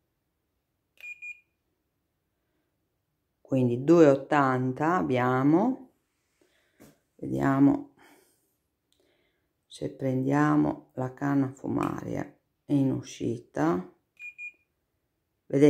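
A handheld thermometer gives a short, high beep.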